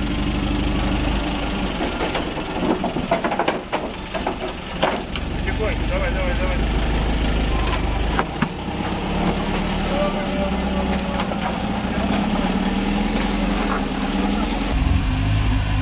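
An off-road truck engine revs loudly.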